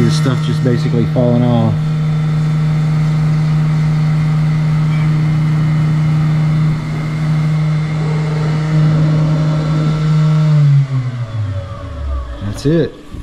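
A milling machine cutter whirs loudly and steadily, then winds down.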